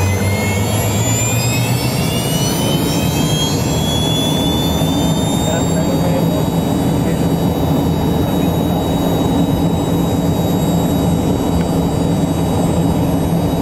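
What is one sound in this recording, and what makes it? Jet engines whine and roar loudly from inside an aircraft cabin, the whine rising in pitch.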